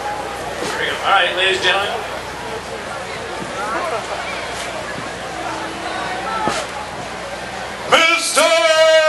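A man shouts into a microphone over loudspeakers outdoors.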